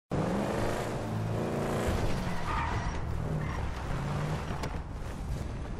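A car engine revs.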